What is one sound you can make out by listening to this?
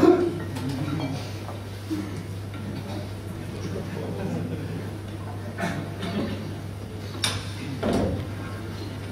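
A man speaks through a microphone and loudspeakers in a hall.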